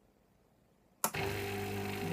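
A button clicks on an espresso machine.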